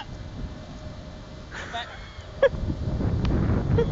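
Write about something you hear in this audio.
A small child kicks a soft ball on grass with a dull thud.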